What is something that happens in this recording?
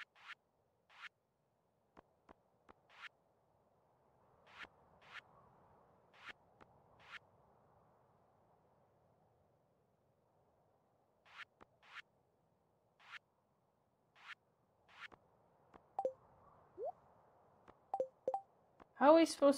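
Short soft game menu blips sound again and again.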